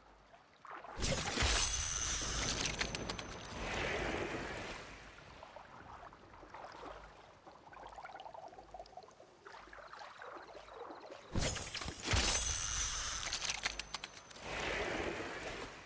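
Water splashes loudly as a fish is pulled out.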